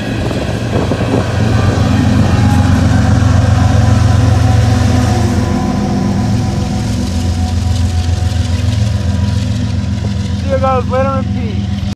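Diesel locomotives rumble past close by with a deep, steady engine drone.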